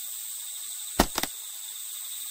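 A laptop lid clicks open.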